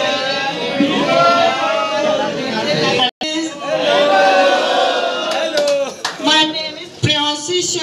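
A young man sings with animation into a microphone, heard through a loudspeaker.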